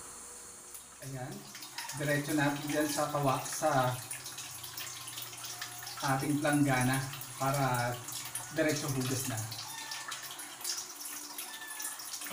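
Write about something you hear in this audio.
Water pours from a tap into a metal bowl.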